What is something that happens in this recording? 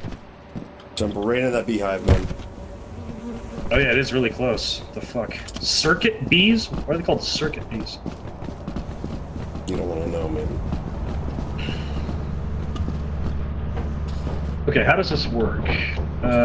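A man talks casually and close to a microphone.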